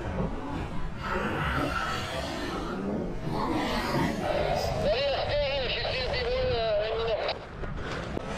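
A young sea lion barks and bleats loudly up close.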